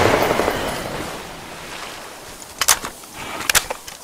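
Water splashes as a creature leaps out of it.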